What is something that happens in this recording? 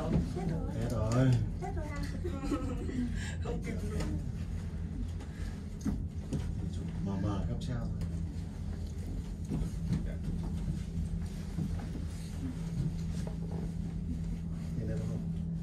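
A cable car hums low and steadily as it glides along its cable.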